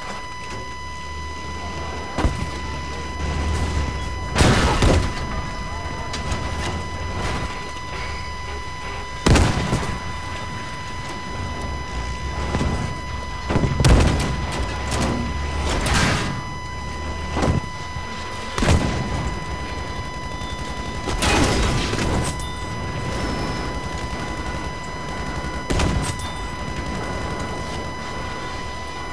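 A tank engine rumbles steadily, low and deep.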